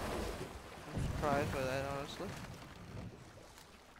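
A wooden boat glides through water with soft splashing.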